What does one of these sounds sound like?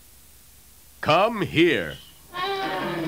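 A man speaks in a lively, cartoonish voice.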